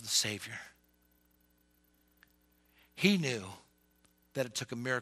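A middle-aged man speaks with animation through a headset microphone, in bursts with pauses.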